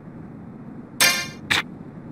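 A bright chime rings as an upgrade completes.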